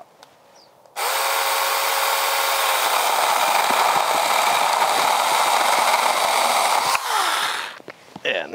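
A cordless power saw buzzes steadily as it cuts through a tree branch.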